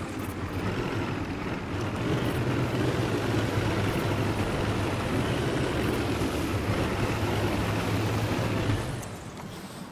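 A boat motor drones steadily, then cuts out.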